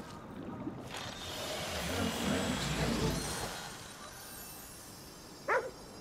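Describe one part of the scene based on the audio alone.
A shimmering magical whoosh swells and then fades away.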